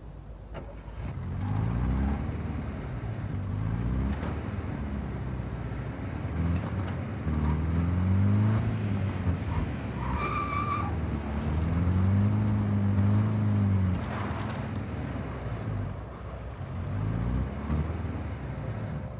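A van engine revs up and down as it drives along.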